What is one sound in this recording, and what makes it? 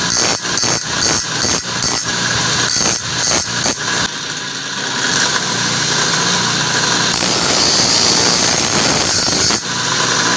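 A grinding wheel whirs steadily.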